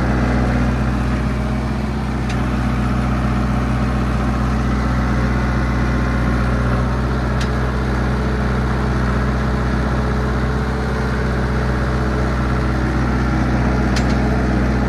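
A diesel engine of a bulldozer rumbles steadily close by.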